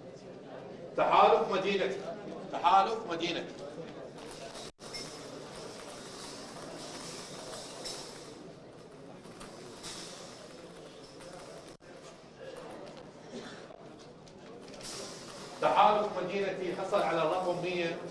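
A man speaks calmly into a microphone, heard over loudspeakers in a large room.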